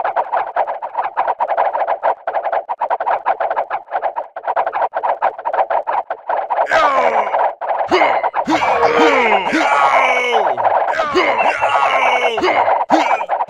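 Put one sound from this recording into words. Many weapons clash and clatter rapidly in a large battle.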